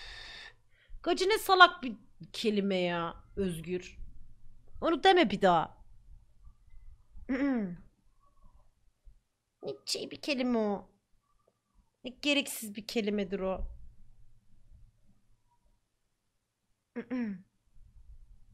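A young woman talks with animation into a microphone, in bursts with pauses.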